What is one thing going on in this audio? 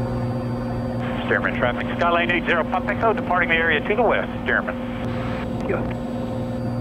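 A woman speaks calmly through a headset intercom.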